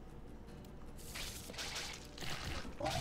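A slashing swipe strikes with a whoosh.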